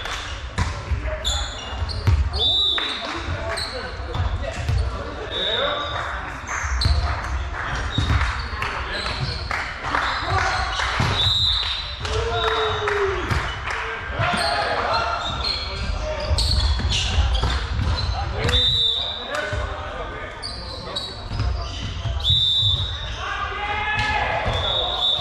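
A volleyball is struck and thuds in a large echoing hall.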